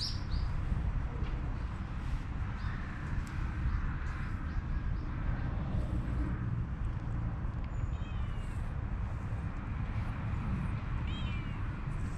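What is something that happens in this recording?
A hand rubs a cat's fur softly.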